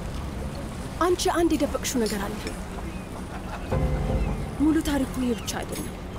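A young woman speaks in an upset, pleading voice nearby.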